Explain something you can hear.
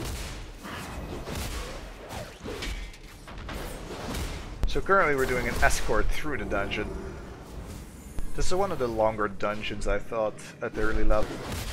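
Blades strike and clang in a fantasy game battle.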